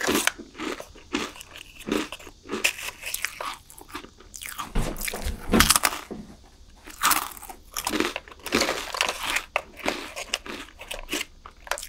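A stick rustles and scrapes inside a paper cup close to a microphone.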